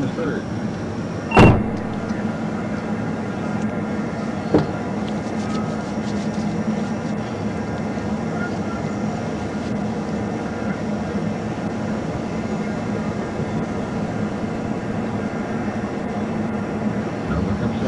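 A car engine idles steadily nearby.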